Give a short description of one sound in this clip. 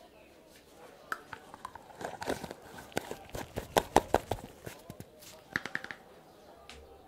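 A jar's lid clicks and rattles as it is handled with gloved hands.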